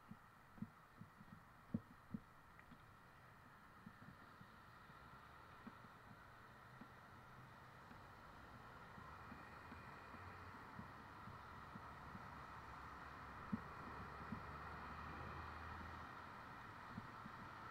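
Traffic hums steadily on a nearby overpass, growing slightly louder.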